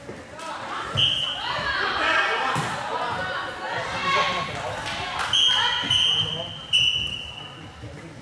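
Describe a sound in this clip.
A referee blows a whistle several times.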